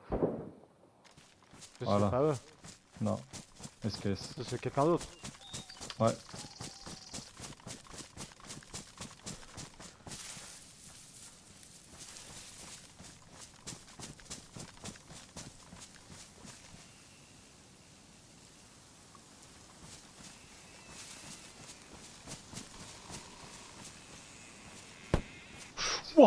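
Footsteps crunch steadily through dry leaves.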